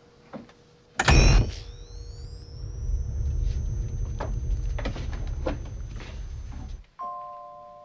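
An elevator hums and rumbles loudly as it rises.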